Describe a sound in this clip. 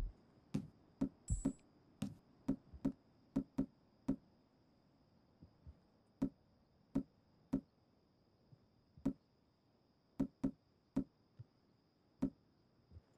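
A game menu clicks sharply each time a new item is scrolled to.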